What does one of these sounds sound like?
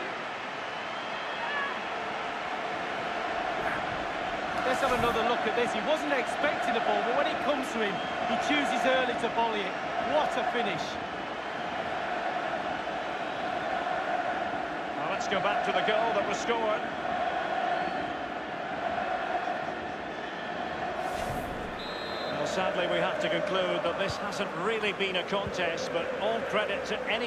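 A large stadium crowd cheers and roars steadily.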